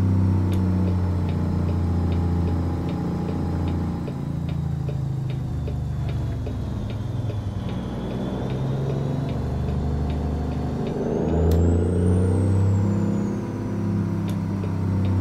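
A truck's diesel engine rumbles steadily, rising and falling in pitch as it changes gear.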